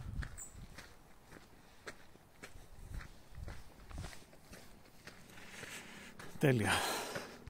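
Footsteps crunch steadily on a gravel path outdoors.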